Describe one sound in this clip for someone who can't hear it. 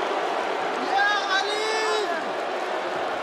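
A young man shouts excitedly.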